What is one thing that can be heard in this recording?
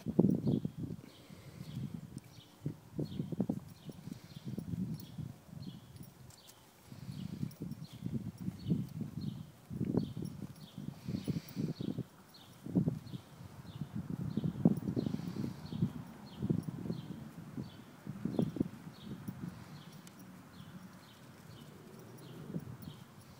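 A horse tears and chews grass close by.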